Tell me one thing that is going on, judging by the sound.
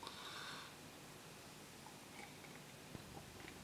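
A man sips a drink from a glass close by.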